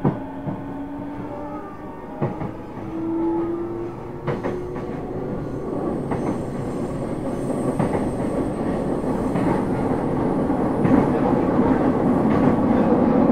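An electric train hums softly while standing at a platform.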